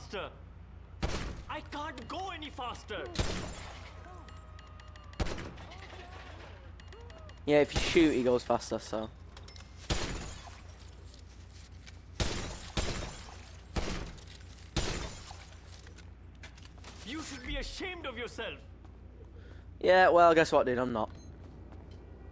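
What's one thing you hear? A man shouts angrily up close.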